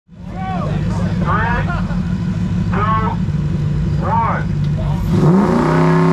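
A car engine idles loudly and rumbles.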